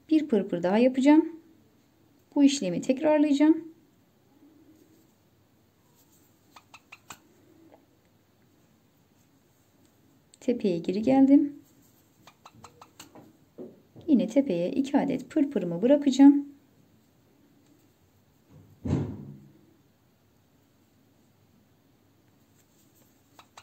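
Thread rustles softly as it is pulled through fabric.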